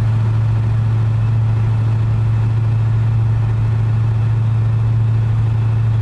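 Tyres hum on a smooth road.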